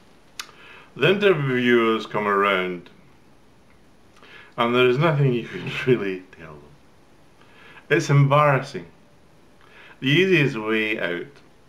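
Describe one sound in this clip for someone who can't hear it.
An older man speaks slowly and calmly, close to a microphone, with pauses between phrases.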